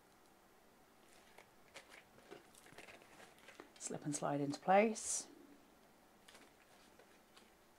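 Stiff card rustles and scrapes as it is scored and folded.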